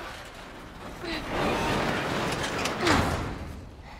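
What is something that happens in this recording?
A young girl grunts with effort.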